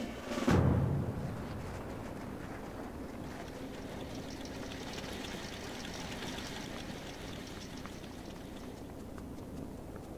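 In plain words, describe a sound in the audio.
Footsteps run quickly over snow and stone.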